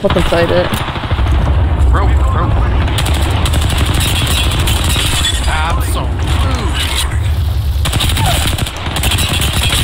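Heavy booms and explosions rumble.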